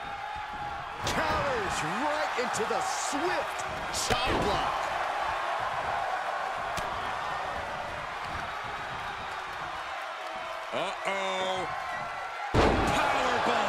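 A body slams heavily onto a wrestling mat with a loud thud.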